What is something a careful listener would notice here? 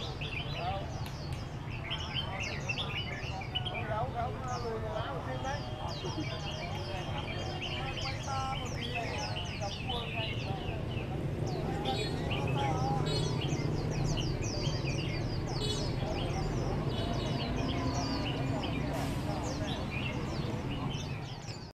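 Men chat nearby.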